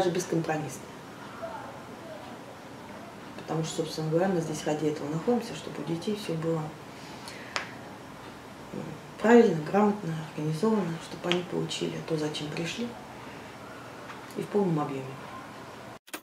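A middle-aged woman speaks calmly and thoughtfully, close by.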